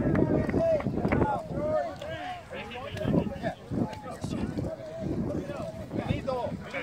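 Several men talk and call out over one another outdoors, close by.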